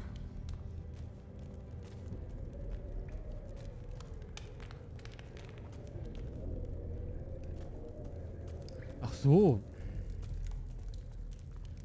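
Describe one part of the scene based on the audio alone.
Footsteps crunch on a rough stone floor.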